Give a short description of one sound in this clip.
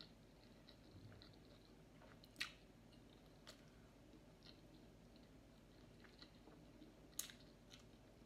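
Fingers squish and scrape food on a plate.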